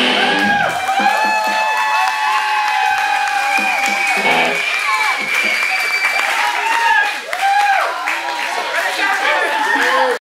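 Electric guitars play loudly.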